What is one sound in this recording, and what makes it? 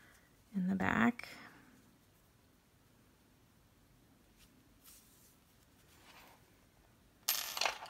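Yarn softly rustles as it is pulled through stitches.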